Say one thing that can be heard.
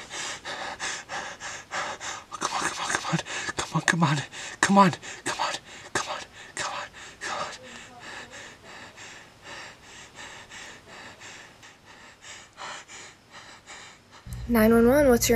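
A young man speaks quietly and tensely, close by.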